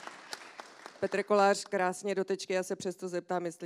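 A woman speaks into a microphone through loudspeakers.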